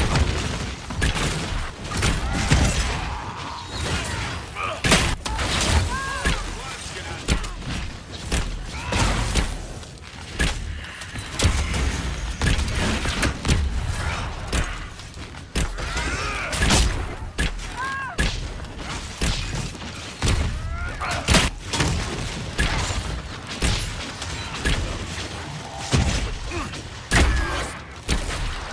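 Magic spells burst and crackle.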